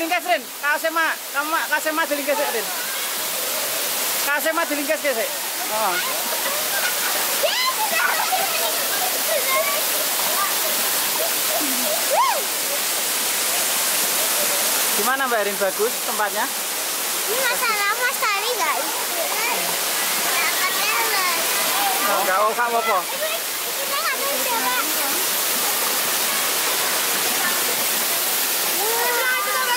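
Young children talk and call out excitedly close by.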